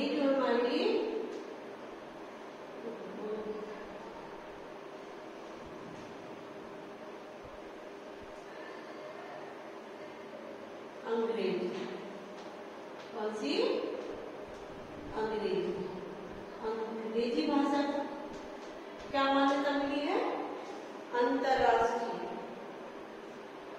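A woman speaks slowly and clearly, close by.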